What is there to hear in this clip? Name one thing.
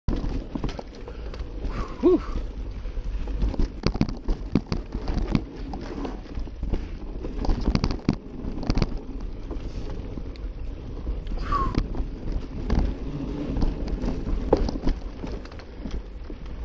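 Wind rumbles steadily against the microphone.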